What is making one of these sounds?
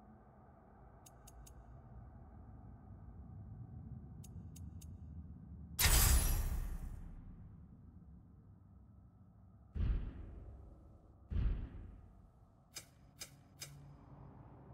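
Soft electronic menu ticks sound in quick bursts.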